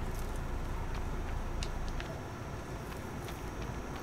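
Footsteps crunch softly on dry ground.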